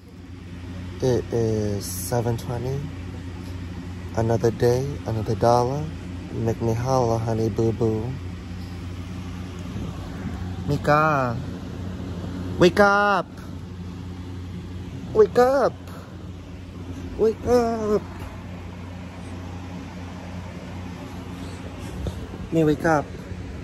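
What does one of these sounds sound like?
A man makes loud, drawn-out vocal sounds close by.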